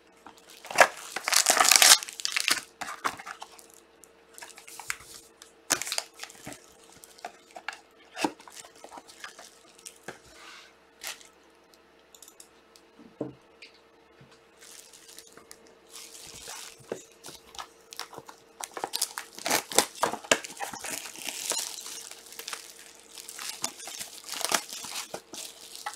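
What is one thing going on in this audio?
Foil packs crinkle and rustle.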